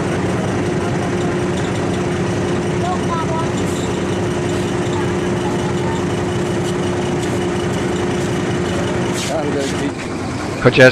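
A ship's engine hums steadily.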